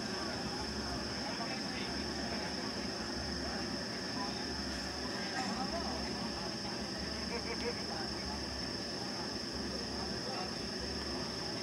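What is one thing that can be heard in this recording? A crowd of people chatters faintly in the distance.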